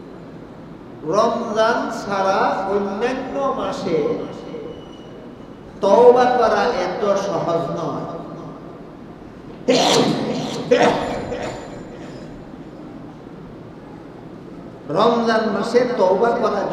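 An elderly man preaches with emotion through a microphone, heard over loudspeakers.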